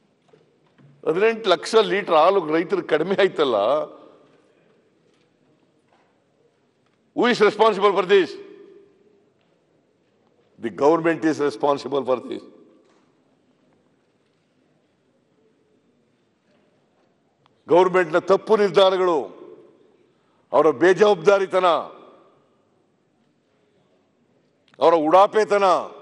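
An elderly man speaks in short, firm bursts with long pauses, heard through a microphone.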